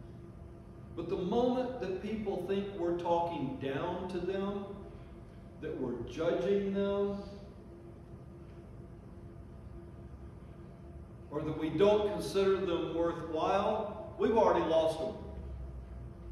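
An older man preaches with emphasis into a microphone, in bursts with long pauses.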